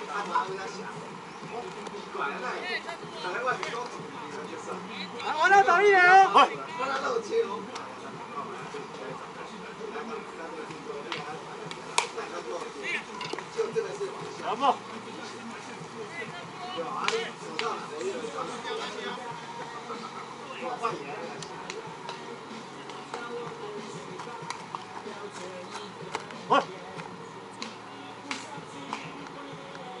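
Men call out and talk across an open outdoor field.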